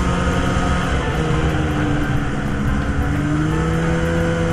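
A two-stroke snowmobile engine drops in pitch briefly, then picks back up.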